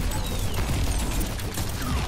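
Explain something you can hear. A pistol fires quick shots.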